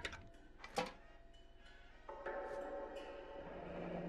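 A metal lid twists and scrapes open on a tin can.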